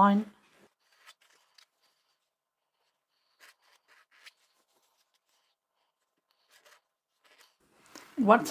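Cloth rustles softly as hands fold and smooth it.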